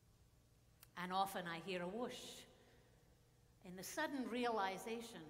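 A woman reads aloud calmly into a microphone.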